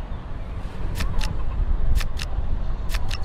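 Playing cards snap into place with short, sharp clicks.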